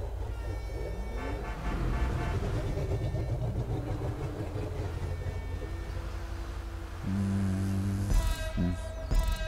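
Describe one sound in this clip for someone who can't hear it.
A van engine idles with a low, steady rumble.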